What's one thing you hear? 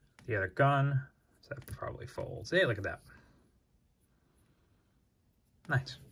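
Small plastic parts click together.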